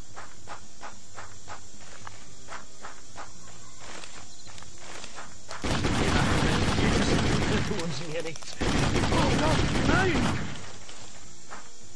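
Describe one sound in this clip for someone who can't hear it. Footsteps thud quickly on grassy ground.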